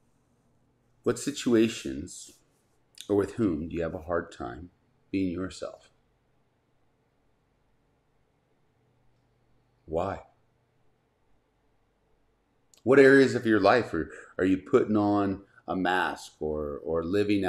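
A middle-aged man speaks calmly and thoughtfully into a close microphone, with long pauses.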